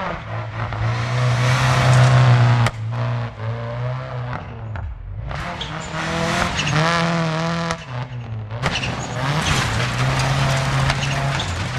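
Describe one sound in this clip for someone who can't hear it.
Tyres crunch and spray over loose gravel.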